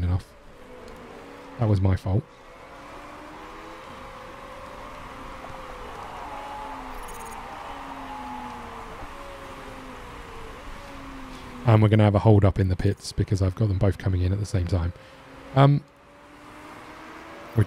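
Racing car engines whine steadily in the distance.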